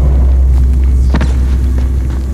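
A blade hacks into flesh with a wet thud.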